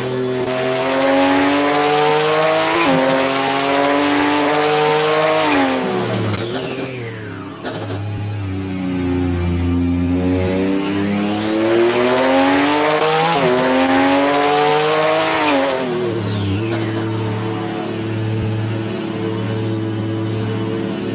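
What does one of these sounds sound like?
A racing car engine roars loudly, revving up and shifting through gears.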